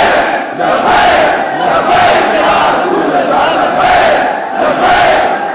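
A large crowd chants loudly together in an echoing hall.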